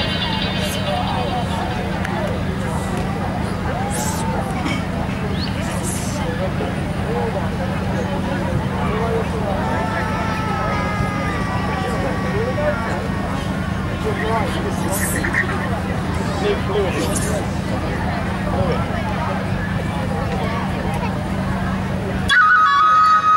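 A crowd of people murmurs and chats softly outdoors.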